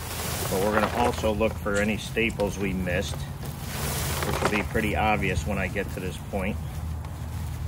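A middle-aged man speaks calmly and close by, outdoors.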